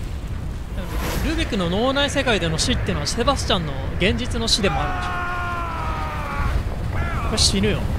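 Wind rushes loudly past a man falling through the air.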